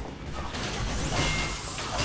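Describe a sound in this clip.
A wrench clangs on metal.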